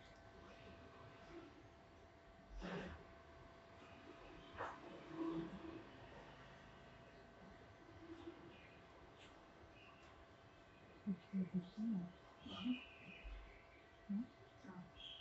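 Fingers rustle softly through long hair.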